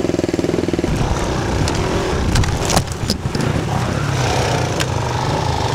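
A dirt bike engine revs loudly and close by.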